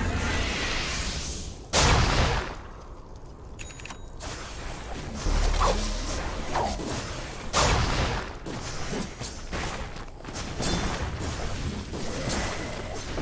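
Spell effects and weapon hits crackle and clash in a game battle.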